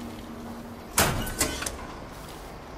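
A metal canister clanks sharply as it is picked up.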